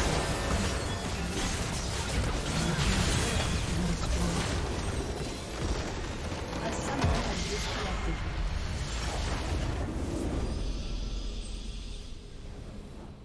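Game battle effects crash and blast loudly.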